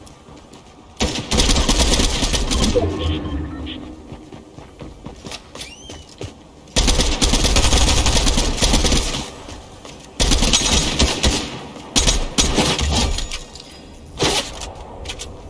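Gunfire bursts out in loud rapid volleys.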